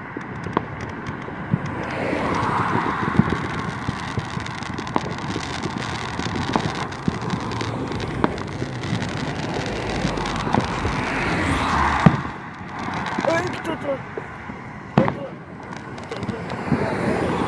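Fireworks pop and bang in the distance.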